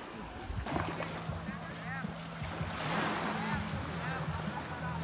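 Small waves lap softly at the shore.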